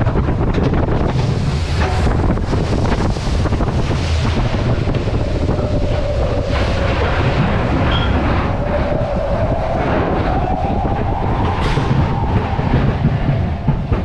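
A steel-track bobsled coaster car rumbles and rattles over the rails, heard from onboard.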